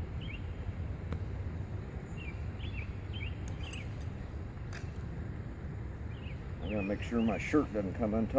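A bee smoker puffs out smoke.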